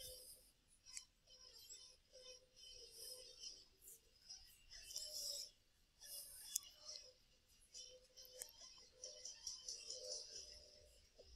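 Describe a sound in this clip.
Small servo motors whir in short bursts.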